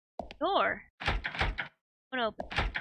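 A locked door rattles.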